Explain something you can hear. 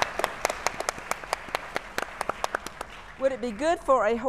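An audience claps and applauds in a large hall.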